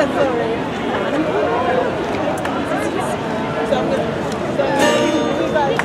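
A man plays a guitar close by.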